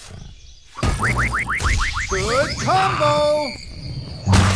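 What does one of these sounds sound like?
A quick chiming jingle plays.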